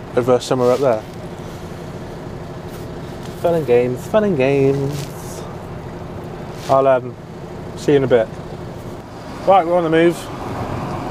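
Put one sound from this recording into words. A man talks calmly and close to a microphone, in short bursts.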